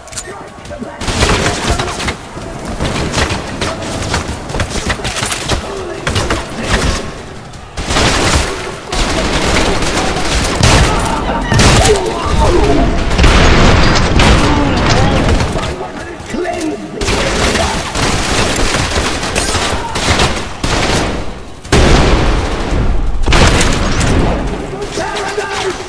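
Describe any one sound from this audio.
A shotgun fires in loud, booming blasts.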